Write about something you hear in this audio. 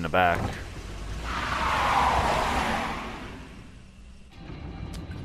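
A pickup truck drives off along the road with a rising whoosh.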